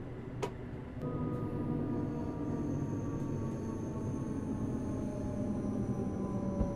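A train's motors whine and slowly fall in pitch as it slows.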